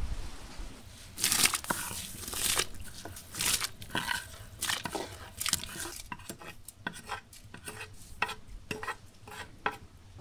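A metal skimmer scrapes rice off a wooden board into a pot.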